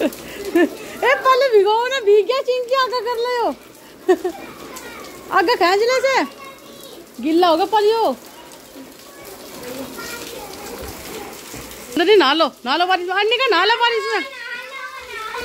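Young children sing and shout playfully nearby.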